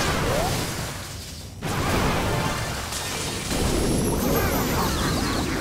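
Cartoonish battle sound effects clash and pop.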